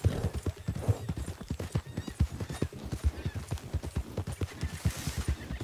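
A horse's hooves thud rapidly on soft ground at a gallop.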